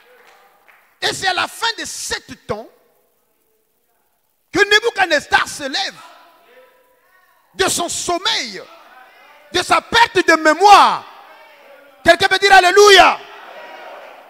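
A man preaches loudly and with animation through a microphone, in short forceful bursts.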